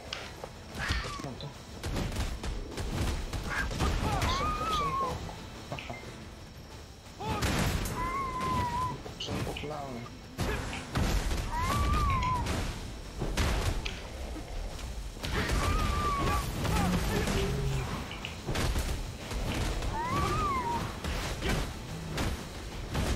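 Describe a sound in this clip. Sword strikes and magic blasts crash again and again in a fight.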